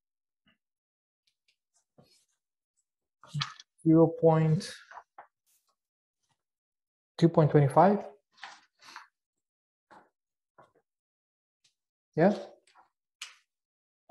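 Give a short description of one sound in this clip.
Paper sheets rustle as a man leafs through them.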